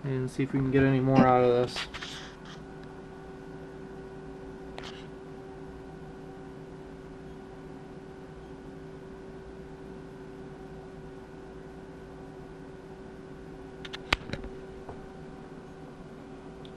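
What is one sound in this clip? A low, steady electrical hum drones from test equipment.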